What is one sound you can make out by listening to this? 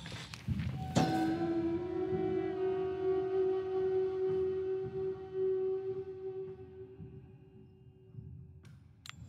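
A soft chime rings out and slowly fades.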